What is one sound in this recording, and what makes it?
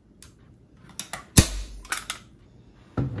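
A staple gun snaps sharply.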